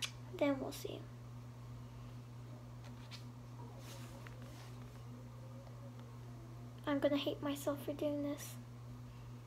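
A young girl speaks calmly close by.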